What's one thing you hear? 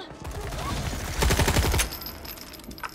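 A gun fires a rapid burst.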